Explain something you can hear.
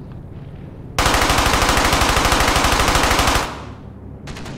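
A submachine gun fires a long continuous burst.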